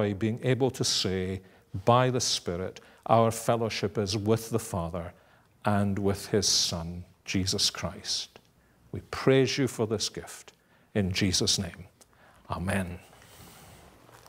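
An older man speaks calmly and earnestly into a microphone.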